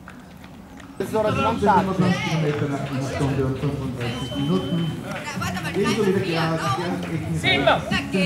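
Several men talk nearby in a loud, busy crowd.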